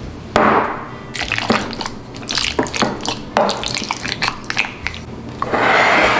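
A wooden spoon stirs food in a bowl.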